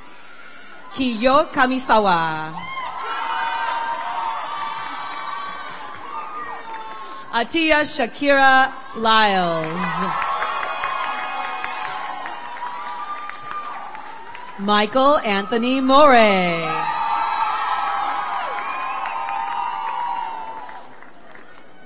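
An audience applauds and cheers in a large hall.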